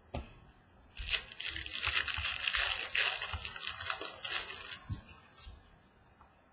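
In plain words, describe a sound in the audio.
A plastic wrapper crinkles and rustles as hands handle it.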